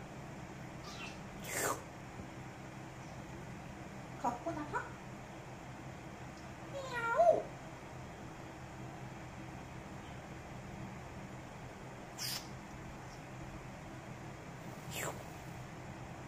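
A parrot whistles and squawks close by, now and then.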